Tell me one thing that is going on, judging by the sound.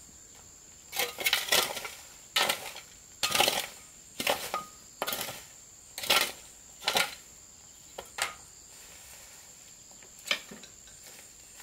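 A hoe scrapes and chops into soil and leaves outdoors.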